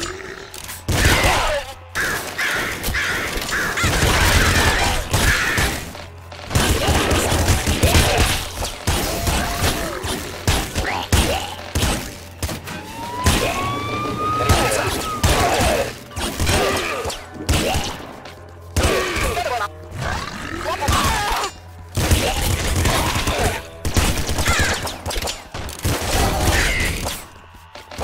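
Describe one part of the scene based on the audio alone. Rapid gunfire and energy shots crackle and blast from a video game.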